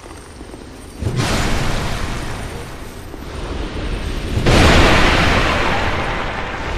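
A sword slashes with heavy crashing blows.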